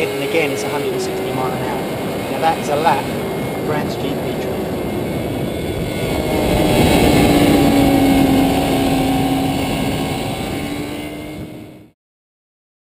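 A motorcycle engine roars at high revs.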